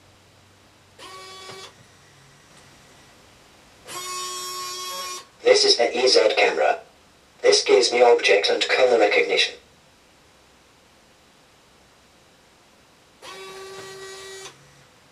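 A robot sounds steady electronic tones.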